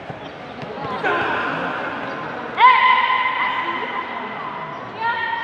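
Spectators shout and cheer loudly in a large echoing hall.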